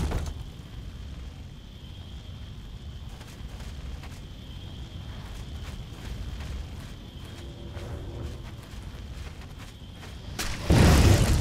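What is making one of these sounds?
Footsteps thud steadily on stone.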